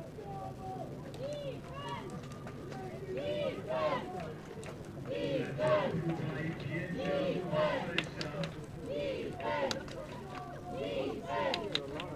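Young men shout and cheer nearby outdoors, growing louder as a play unfolds.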